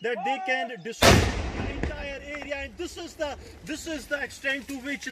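A loud explosion booms and rumbles outdoors, echoing off the hills.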